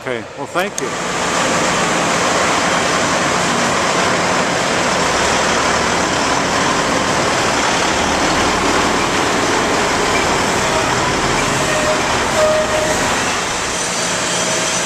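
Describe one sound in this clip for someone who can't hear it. A truck engine rumbles as a truck pulls in.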